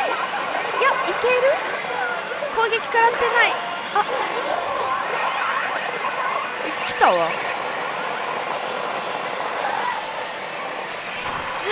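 A young woman speaks excitedly close by.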